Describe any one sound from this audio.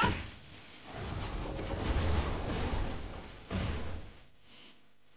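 A dark magic attack whooshes and rumbles.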